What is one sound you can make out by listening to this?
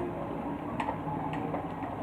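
Water pours from a kettle into a mug.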